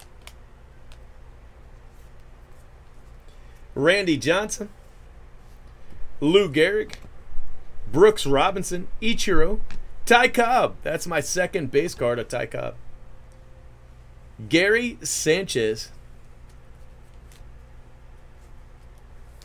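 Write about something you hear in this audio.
Trading cards slide and rustle against each other.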